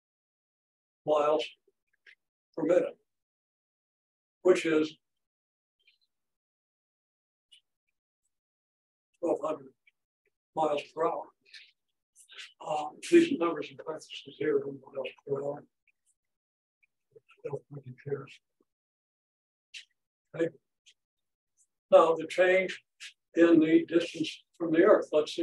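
An elderly man speaks calmly in pauses, as if explaining.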